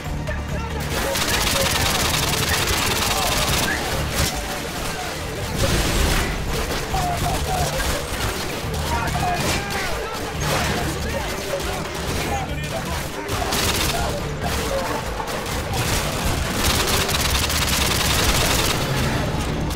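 Rapid gunfire bursts crackle loudly.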